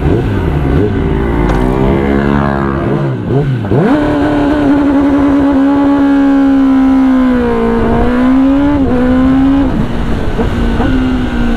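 A motorcycle engine revs up and screams loudly as the bike accelerates through the gears.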